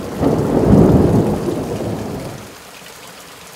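Thunder rumbles loudly overhead and slowly fades.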